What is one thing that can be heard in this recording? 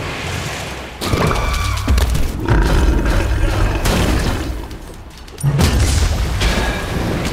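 Booming impacts thud with deep rumbles.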